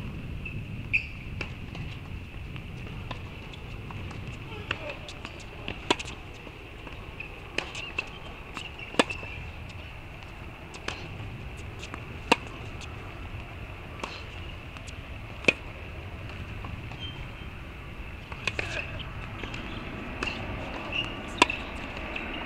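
A tennis ball is struck with racquets in a rally, with sharp pops back and forth.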